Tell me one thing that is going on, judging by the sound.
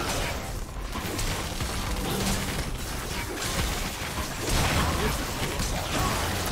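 Video game spells crackle and blast during a battle.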